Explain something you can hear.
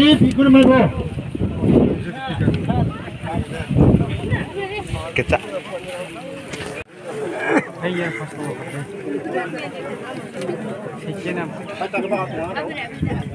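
A crowd of men chatters loudly close by, outdoors.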